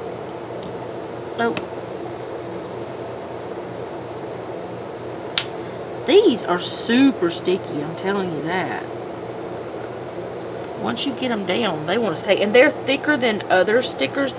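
Fingers rub and press stickers flat onto a paper page.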